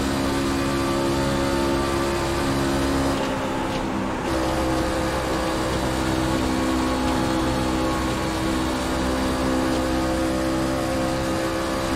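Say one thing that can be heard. A race car engine roars steadily at high revs, easing off briefly before roaring again.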